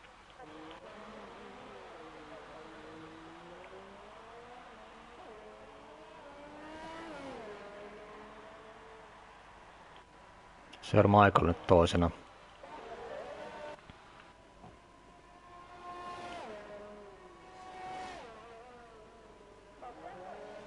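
Racing car engines whine, shifting gears up and down.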